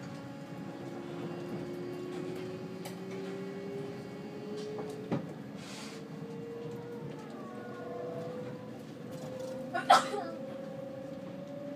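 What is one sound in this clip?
A train's motor whines and slowly rises in pitch.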